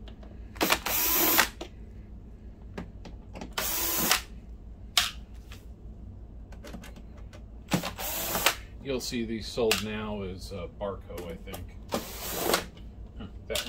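A cordless screwdriver whirs in short bursts.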